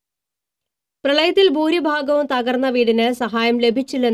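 A young woman reads out the news calmly and clearly into a microphone.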